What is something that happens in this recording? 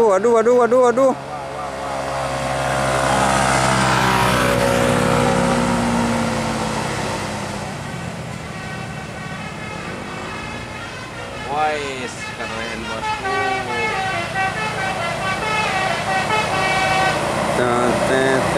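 A bus horn plays loud, wavering musical tunes.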